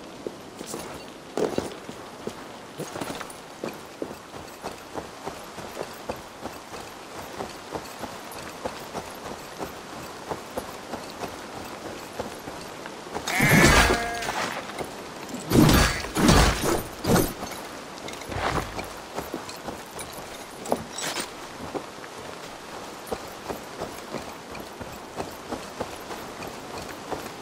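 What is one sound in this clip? Footsteps crunch steadily through grass and over stones.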